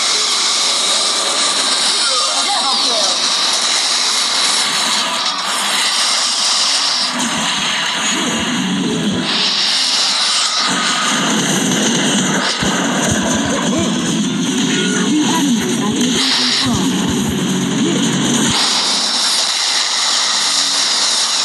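Game explosions boom.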